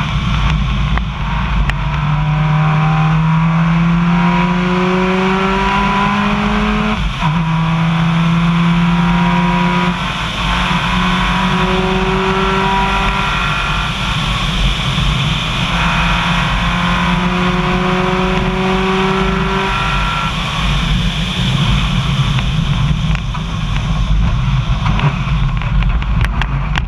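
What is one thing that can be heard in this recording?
A car engine revs up and drops as the gears shift.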